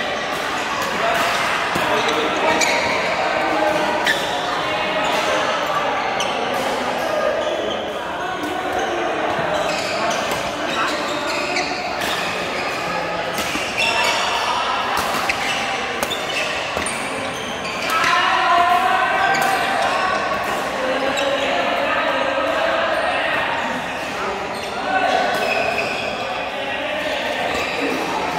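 Men and women chatter and call out across the echoing hall.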